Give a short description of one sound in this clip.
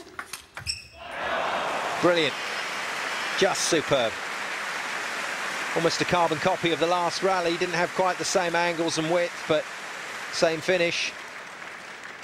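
A crowd in a large hall cheers and applauds.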